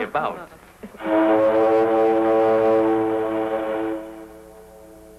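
A ship's steam whistle blows loudly and steadily, then fades.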